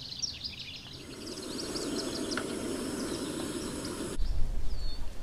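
A camp stove burner roars steadily.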